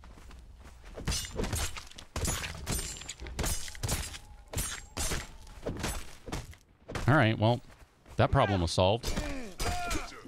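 Weapon blows land with heavy thuds.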